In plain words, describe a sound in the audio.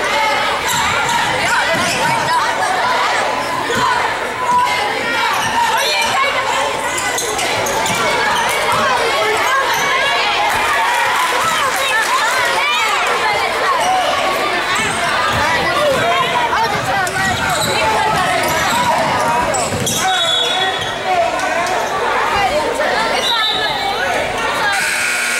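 A crowd of spectators chatters and cheers in a large echoing hall.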